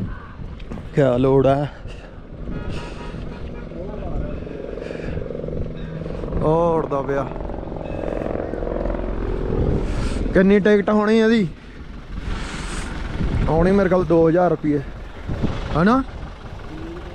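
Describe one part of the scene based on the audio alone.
Men talk loudly nearby, outdoors.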